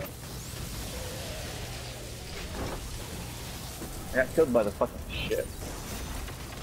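Electric energy blasts crackle and fizz.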